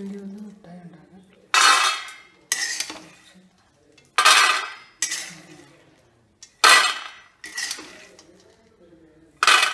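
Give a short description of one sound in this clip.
Peanuts rattle and clatter as they pour into a metal tin.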